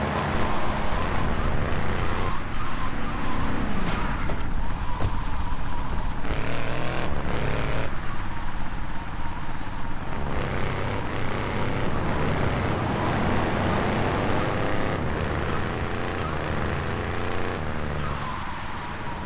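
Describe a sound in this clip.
A car engine hums steadily as a vehicle drives along.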